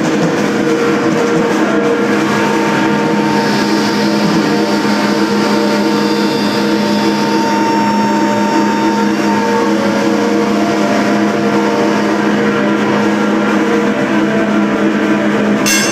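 An electric guitar plays loud, sustained chords through an amplifier.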